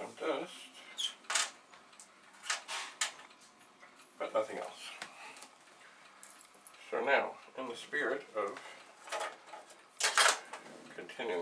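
Plastic parts click and clatter as an older man handles them.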